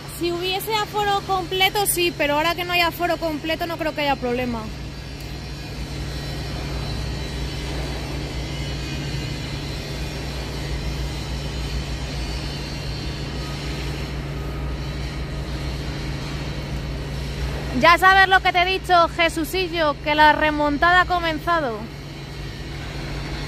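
A tower crane's motor hums steadily overhead.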